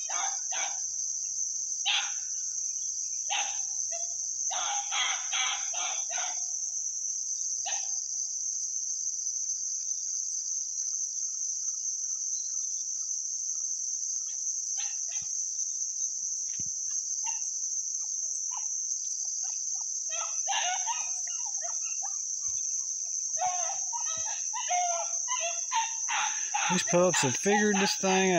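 Chickens cluck and squawk a short way off.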